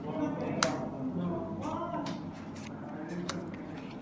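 Playing cards slide and click against each other in hands.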